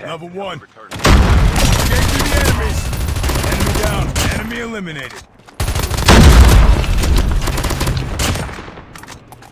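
An assault rifle fires in rapid bursts at close range.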